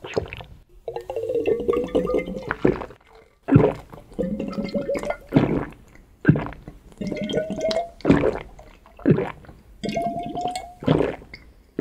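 Liquid glugs in a glass flask, rising in pitch as it empties.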